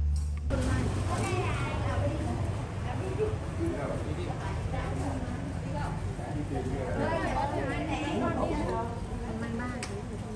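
Several women chat nearby, their voices overlapping.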